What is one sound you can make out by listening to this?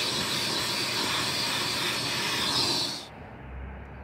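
A shop vacuum sucks across carpet.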